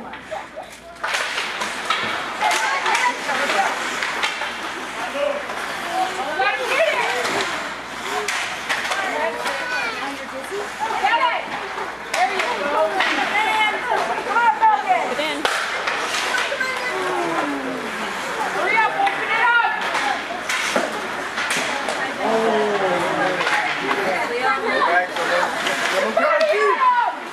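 Spectators shout and cheer in an echoing rink.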